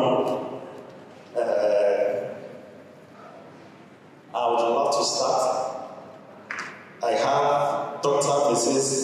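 A man speaks steadily into a microphone, heard through loudspeakers in a large echoing hall.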